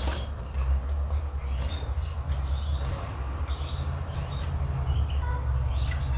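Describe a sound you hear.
A small bird chirps and trills in short high notes.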